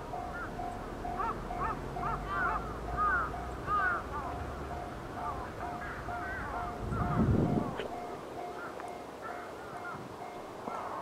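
A level crossing bell rings in a steady, even rhythm.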